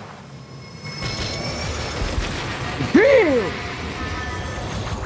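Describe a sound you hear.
A goal explosion booms in a game.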